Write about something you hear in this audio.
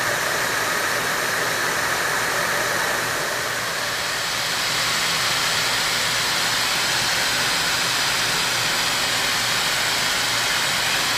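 A milling cutter grinds and hisses against metal.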